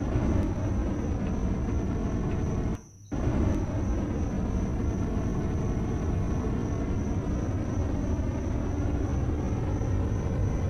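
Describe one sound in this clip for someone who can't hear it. A cutting torch hisses and buzzes steadily.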